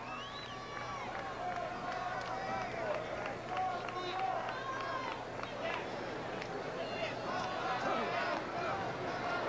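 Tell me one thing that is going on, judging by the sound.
A large crowd chatters and calls out across an open stadium.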